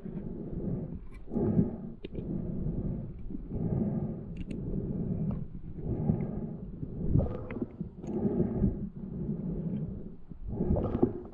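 Bubbles gurgle and rush out in regular bursts.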